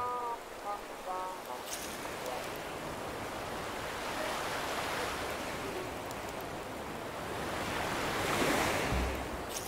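Gentle waves wash onto a sandy shore.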